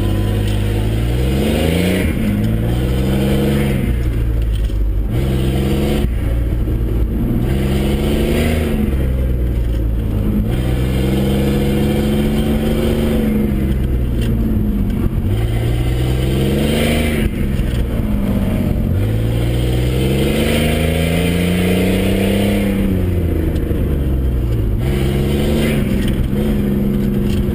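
Tyres scrub and squeal on pavement through tight turns.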